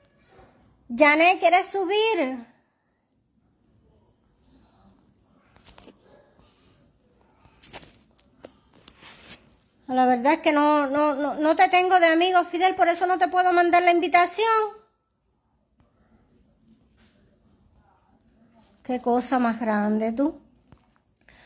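A middle-aged woman speaks calmly and close by, in short bursts with pauses.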